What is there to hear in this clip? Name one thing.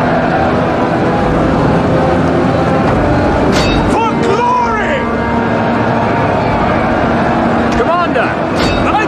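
Soldiers shout and cry out in the fight.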